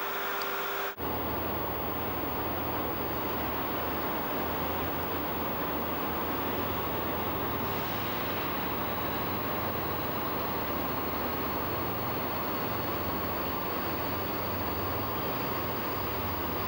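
A diesel train's engine rumbles as the train approaches.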